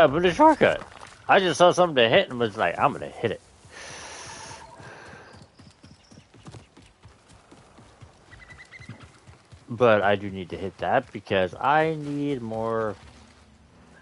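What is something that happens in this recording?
Footsteps run over grass and rock.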